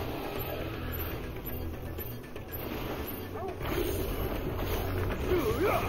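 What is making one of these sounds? Magic energy crackles and zaps sharply.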